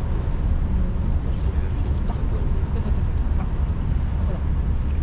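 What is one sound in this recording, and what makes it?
A ship's engine hums steadily.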